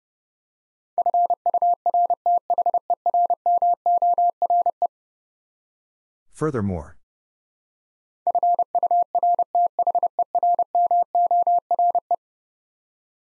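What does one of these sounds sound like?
A telegraph key taps out quick Morse code beeps.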